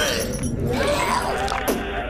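A man screams in terror.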